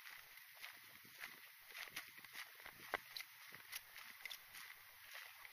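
Bike tyres crunch over dry leaves on a dirt trail.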